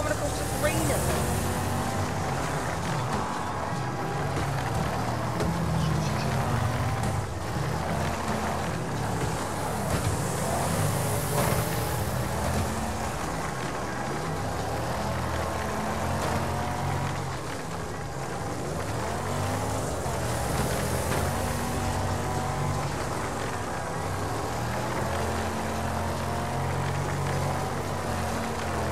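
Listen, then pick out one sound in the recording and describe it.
Tyres slide and scrabble on a dirt track.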